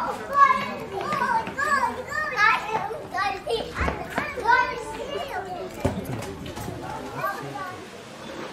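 A young boy shouts and talks nearby in the street.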